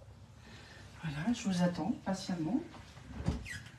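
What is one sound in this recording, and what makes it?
A woman speaks briefly and expressively close by.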